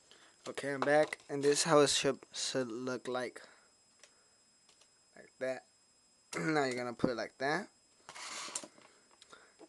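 Foil crinkles and rustles as a hand handles it.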